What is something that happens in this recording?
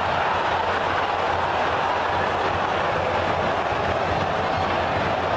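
A stadium crowd murmurs and cheers steadily in a large open space.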